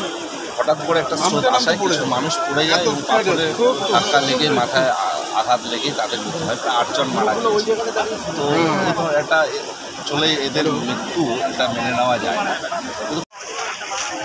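A man speaks with animation close to a microphone, outdoors.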